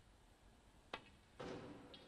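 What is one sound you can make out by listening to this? A snooker cue strikes the cue ball with a sharp click.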